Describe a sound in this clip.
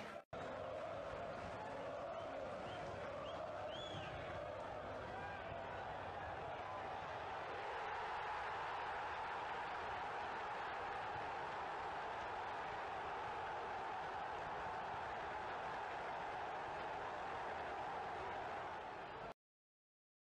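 A large stadium crowd roars and cheers far off.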